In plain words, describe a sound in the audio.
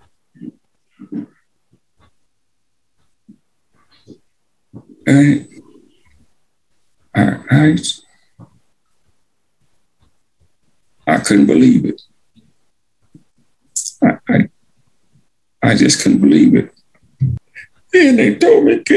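An elderly man speaks slowly in bursts over an online call, with long pauses.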